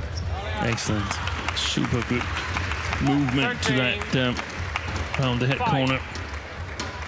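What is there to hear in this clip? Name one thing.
A crowd cheers and applauds loudly in a large hall.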